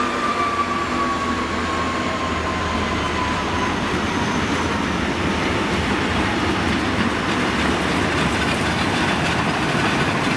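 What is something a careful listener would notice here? Freight wagons rattle and clatter over the rails.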